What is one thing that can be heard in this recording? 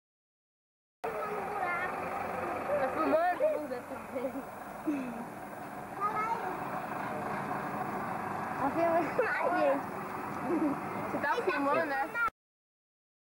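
Children talk and call out excitedly close by.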